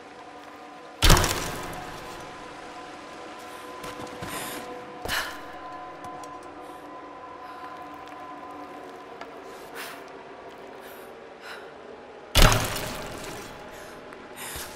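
Explosions boom with a rumbling echo.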